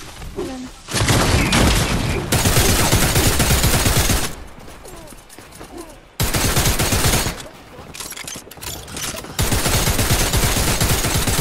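Gunfire blasts rapidly in loud bursts.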